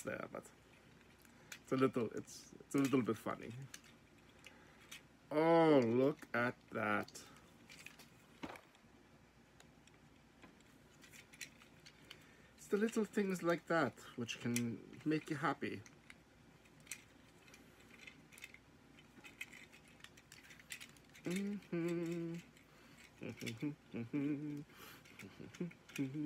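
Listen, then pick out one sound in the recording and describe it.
Plastic toy parts click as a man handles a toy.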